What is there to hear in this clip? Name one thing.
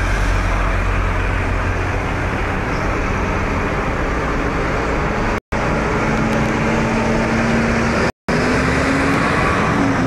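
A truck engine rumbles as it drives past nearby.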